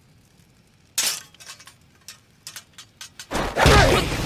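Metal gear clicks and clanks.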